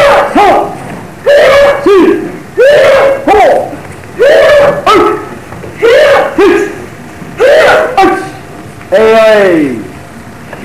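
Young children shout sharply together, again and again.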